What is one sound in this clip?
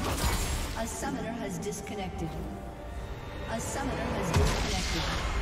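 Game spell and combat effects clash and crackle.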